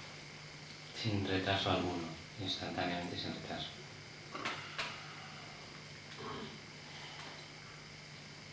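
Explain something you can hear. An elderly man speaks calmly and slowly into a microphone.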